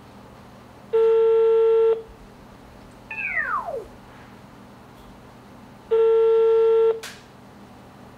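A ringing tone sounds through a phone handset.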